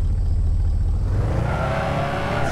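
A car engine revs up sharply, rising in pitch.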